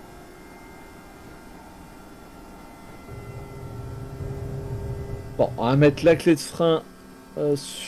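A train's engine hums and rumbles steadily.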